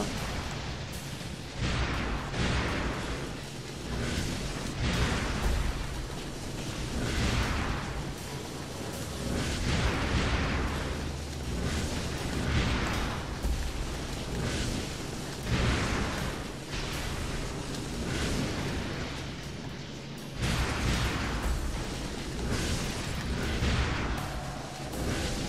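Fiery blasts whoosh and boom again and again.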